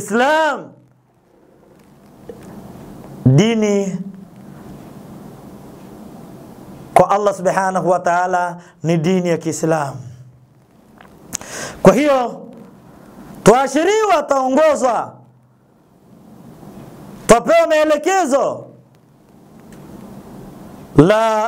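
A middle-aged man chants in a melodic voice through a microphone, pausing between phrases.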